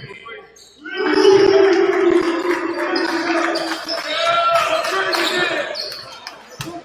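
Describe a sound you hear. A crowd cheers in an echoing gym.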